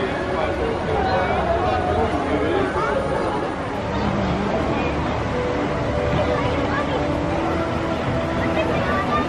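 A crowd of people chatters in the open air.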